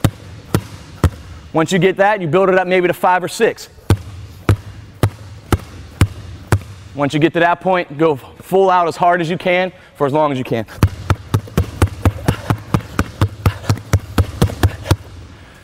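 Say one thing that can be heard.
Basketballs bounce rhythmically on a hard floor.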